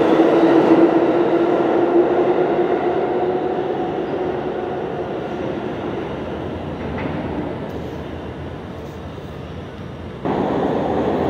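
A subway train rumbles away through a tunnel and slowly fades.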